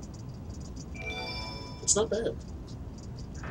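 A short game jingle plays.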